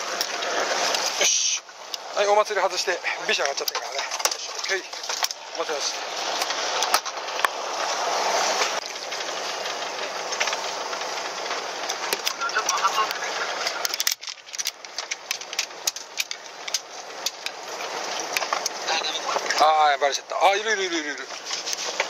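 Sea water laps against a boat's hull.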